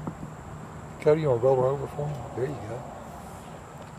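A man speaks briefly and calmly, close by.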